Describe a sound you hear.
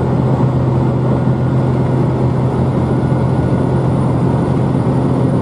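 A train rumbles steadily with a low, constant hum.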